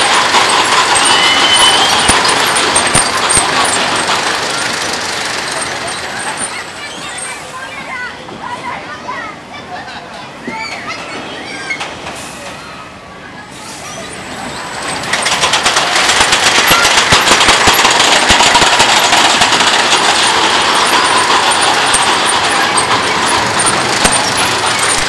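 A roller coaster train roars and rattles along its steel track.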